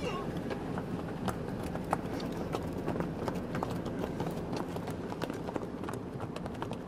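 Horse hooves clop on asphalt close by.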